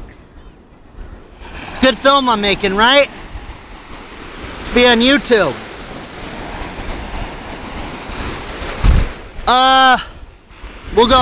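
Waves wash and splash in the sea.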